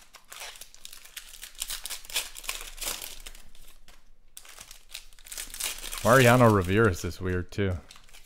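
Foil card wrappers crinkle and tear as they are pulled open by hand.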